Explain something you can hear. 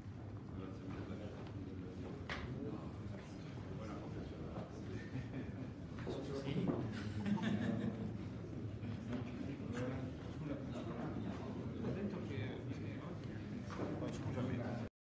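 Several men talk to one another nearby in a large echoing hall.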